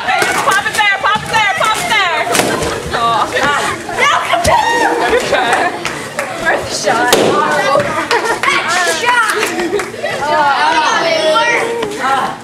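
Children shout and scream excitedly in an echoing room.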